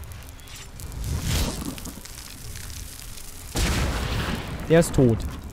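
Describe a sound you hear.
A magic spell crackles and bursts with electric energy.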